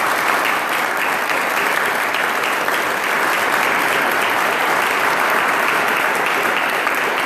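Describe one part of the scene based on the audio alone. A crowd applauds steadily in a room.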